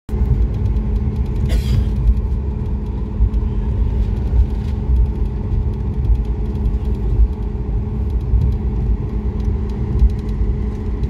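A jet engine hums steadily up close.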